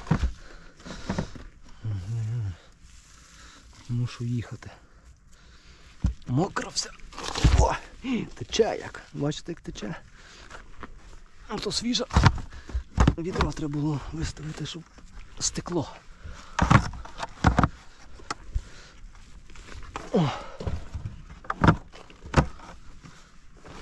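Plastic crates knock and scrape as they are lifted and set down.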